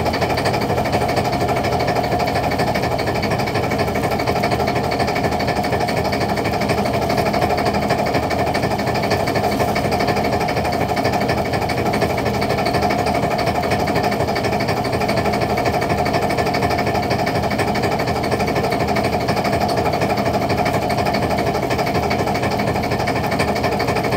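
A net hauler machine hums and rattles steadily close by.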